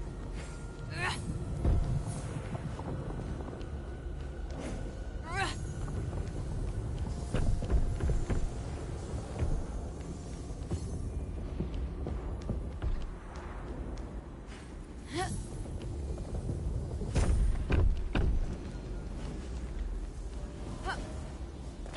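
A sword swishes and strikes with bright magical whooshes.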